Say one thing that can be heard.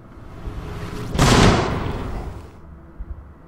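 A magic blast whooshes.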